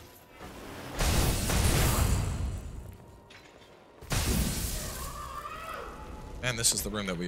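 A heavy weapon slams down with a loud, booming blast.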